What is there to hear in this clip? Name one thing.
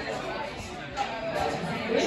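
Men and women chatter nearby in a busy room.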